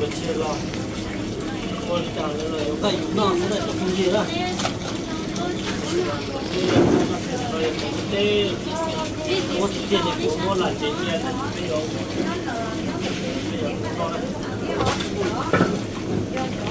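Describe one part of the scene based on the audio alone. Water splashes as hands scrub in a basin.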